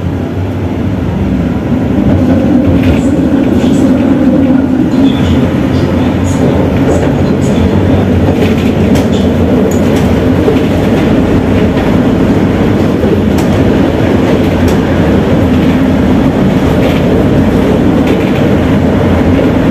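A tram rumbles steadily along its tracks.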